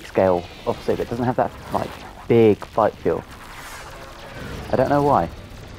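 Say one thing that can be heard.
Laser cannons fire in short bursts.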